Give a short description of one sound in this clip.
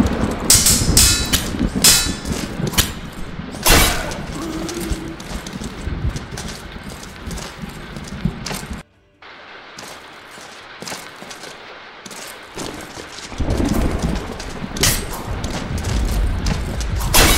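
Swords clash and scrape with sharp metallic rings.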